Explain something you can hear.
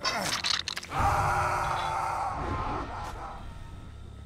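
A man groans in pain up close.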